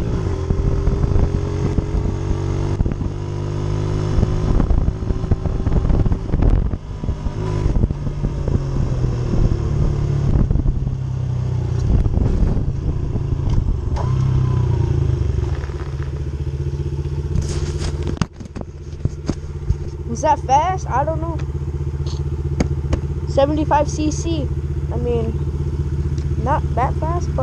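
A small motorbike engine hums and revs close by.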